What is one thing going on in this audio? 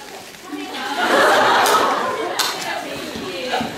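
A woman laughs.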